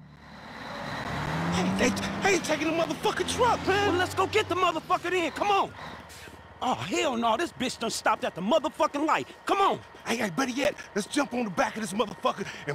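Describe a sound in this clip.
A young man shouts loudly with excitement.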